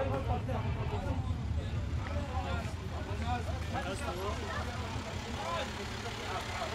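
Several men talk and call out close by, voices overlapping.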